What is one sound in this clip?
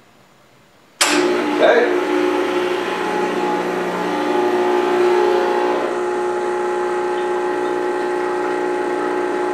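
An espresso machine starts with a click and hums steadily as it pumps.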